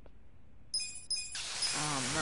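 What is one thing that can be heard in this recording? A game menu chimes as a selection is confirmed.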